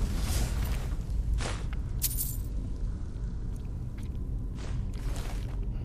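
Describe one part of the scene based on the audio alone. Short game menu clicks sound as items are picked.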